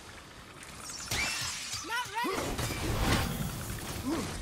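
A crackling burst of magic roars and hisses.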